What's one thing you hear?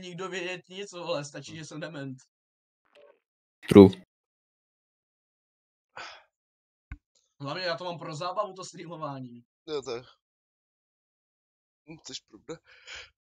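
A young man talks casually into a close microphone, in bursts with pauses.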